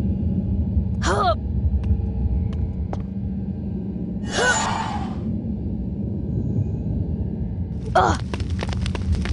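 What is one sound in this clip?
A magic spell whooshes with a bright, shimmering sweep.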